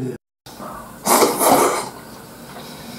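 A man slurps noodles noisily.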